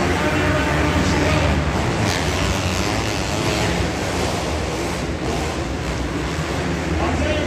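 Several motorcycle engines rev and buzz loudly in a large echoing hall.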